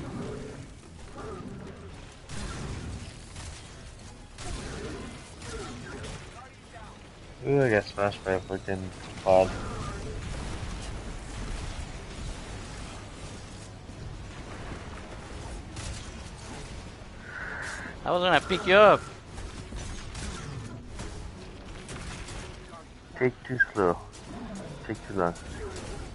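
Video game gunfire rattles in rapid bursts.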